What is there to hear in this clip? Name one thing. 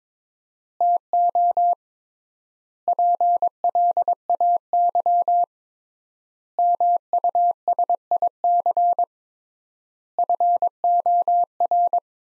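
A Morse code key taps out beeping tones in quick bursts.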